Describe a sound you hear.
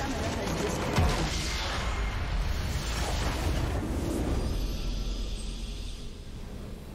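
A huge magical explosion booms and crackles, then rumbles away.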